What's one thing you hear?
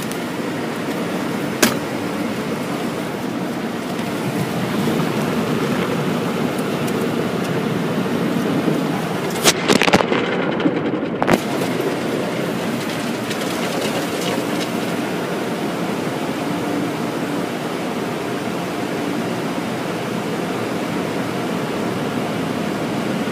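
Water sprays and drums hard on a car's windshield and roof, heard from inside the car.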